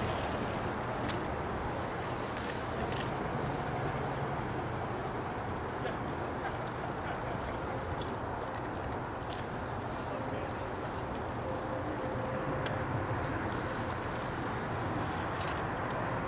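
A diesel locomotive engine rumbles steadily as it approaches.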